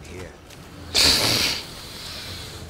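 A burst of fire roars briefly.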